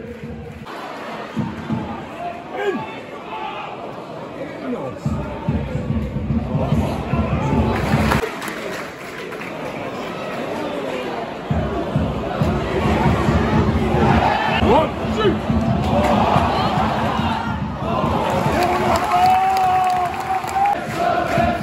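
A large outdoor crowd murmurs and chatters all around, with men's voices close by.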